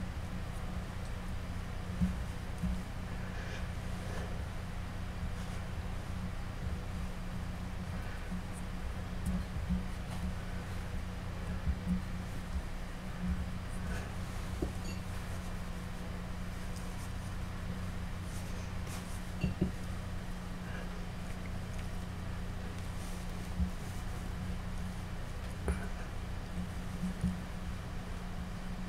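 Hands knead and press soft clay.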